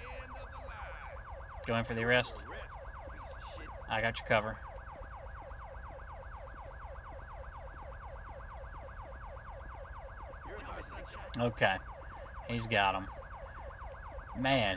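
A police siren wails in quick, repeating sweeps nearby.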